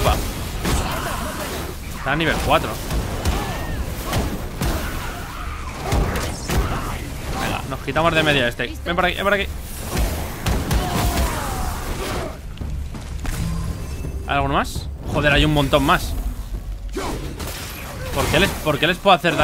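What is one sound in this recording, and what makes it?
Heavy blows and thuds of a game fight sound out repeatedly.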